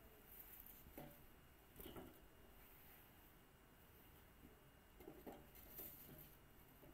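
Tools knock faintly against metal now and then.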